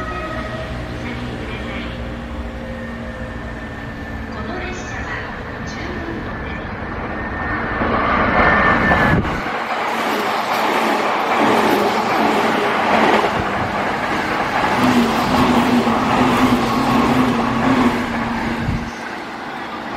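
An electric train approaches and rumbles past close by at speed.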